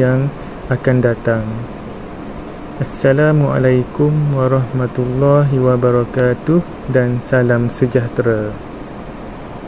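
A man explains calmly into a microphone.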